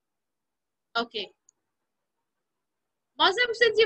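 A young person speaks through an online call.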